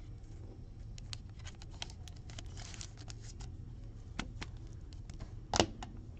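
A foil wrapper crinkles and tears as it is opened.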